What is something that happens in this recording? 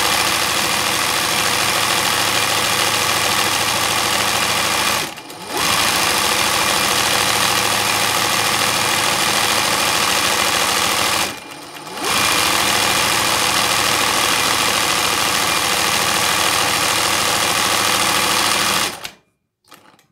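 A sewing machine whirs steadily, stopping briefly twice before falling silent.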